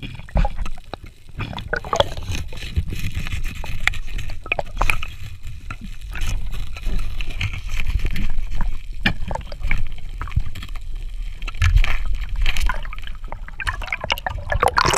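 Water churns and rumbles close by underwater.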